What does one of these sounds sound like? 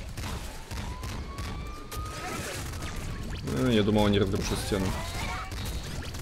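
Video game gunshots and electronic blips sound rapidly.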